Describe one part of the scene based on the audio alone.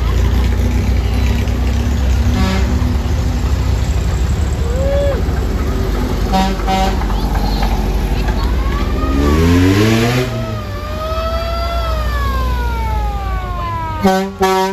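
Old car engines rumble and putter as vehicles drive slowly past.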